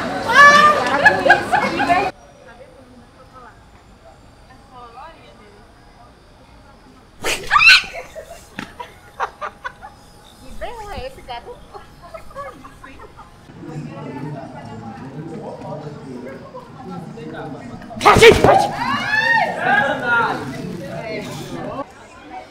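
A young woman shrieks in fright close by.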